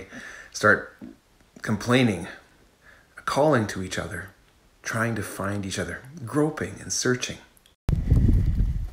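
A middle-aged man speaks calmly and close up.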